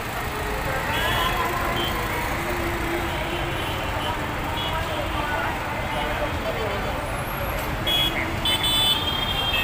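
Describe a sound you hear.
Horns honk briefly now and then.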